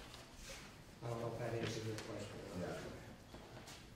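An elderly man speaks calmly from a short distance.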